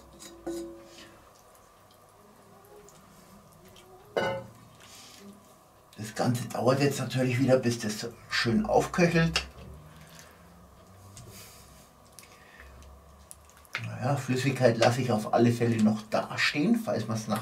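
A spoon scrapes and stirs thick stew in a pot.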